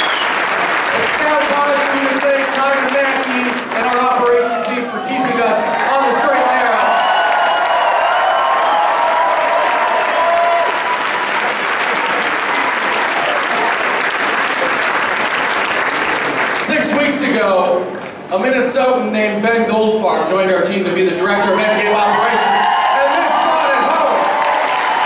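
A crowd sings together in unison.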